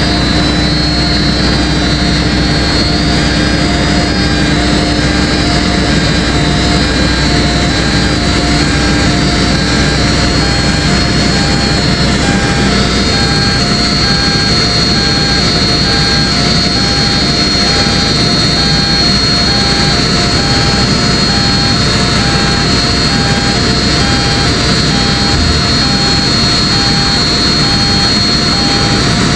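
A travel warning alarm beeps on a tracked machine.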